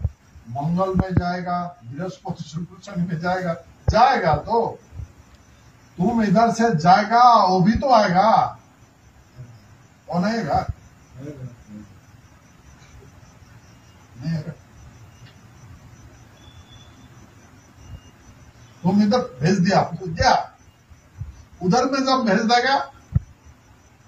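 A man talks calmly nearby in bursts, with pauses.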